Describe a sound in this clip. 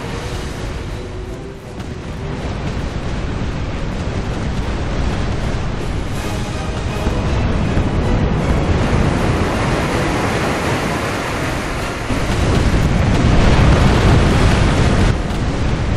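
Waves wash and churn against a ship's hull.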